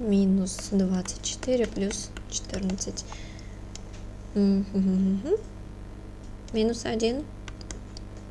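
A young woman speaks calmly into a close microphone.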